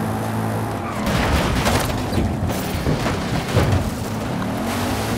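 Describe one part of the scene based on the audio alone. A car crashes and tumbles with loud thuds and scraping.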